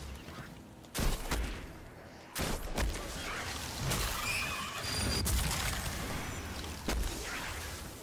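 Gunshots and explosions boom in sudden bursts.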